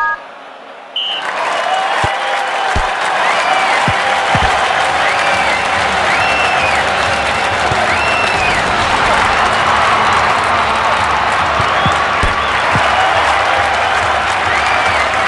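A stadium crowd cheers and roars steadily.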